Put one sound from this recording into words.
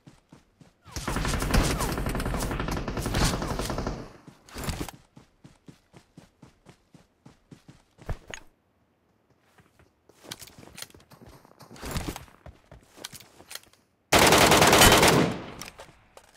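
A rifle fires in rapid bursts.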